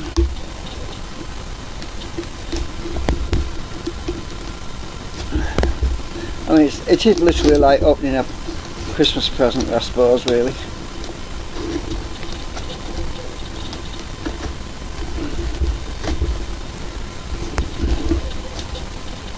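A small tool scratches and taps against a cardboard tube.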